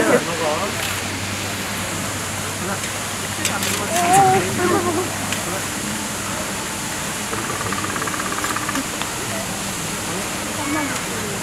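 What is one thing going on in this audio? A tiger licks and slurps at a metal feeding tool.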